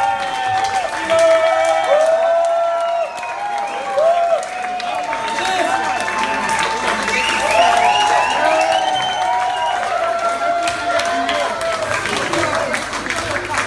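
Several men sing loudly together through microphones.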